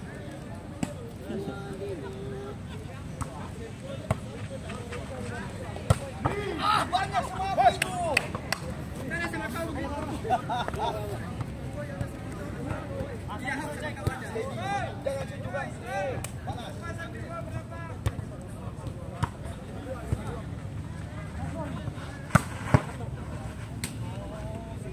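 A ball is kicked and thumps sharply.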